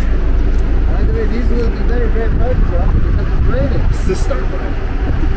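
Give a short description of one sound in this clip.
A young man talks casually nearby.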